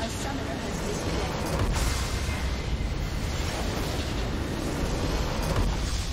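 A large magical structure bursts with a deep rumbling explosion.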